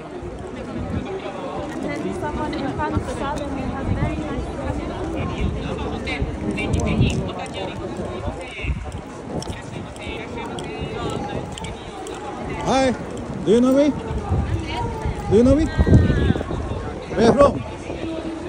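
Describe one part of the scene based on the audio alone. A busy crowd murmurs and chatters outdoors.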